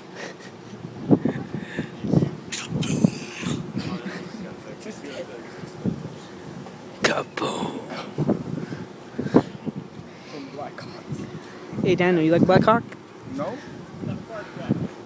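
A teenage boy talks and laughs close by.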